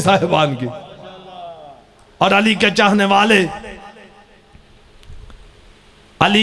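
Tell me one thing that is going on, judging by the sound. A man recites loudly and emotionally into a microphone, heard through loudspeakers with echo.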